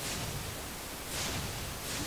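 A burst of fire whooshes out.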